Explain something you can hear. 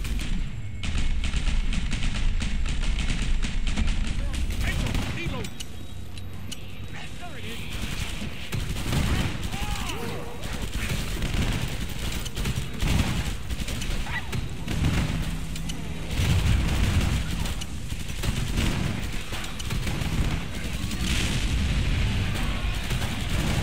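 Guns fire rapidly in bursts.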